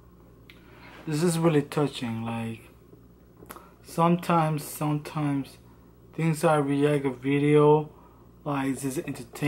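A young man speaks calmly and close up, in short bursts.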